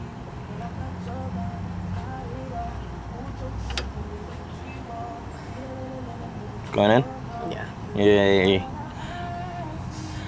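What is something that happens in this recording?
Metal parts clink softly as hands work on a car's brake.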